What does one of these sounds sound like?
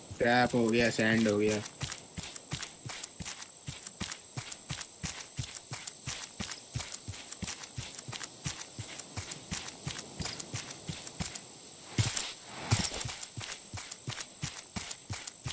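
Footsteps thud steadily over the ground at an even pace.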